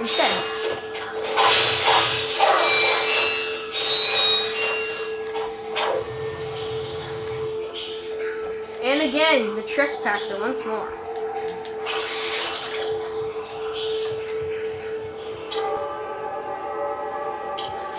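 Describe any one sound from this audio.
Electronic game sound effects chime, whoosh and blip from a television speaker.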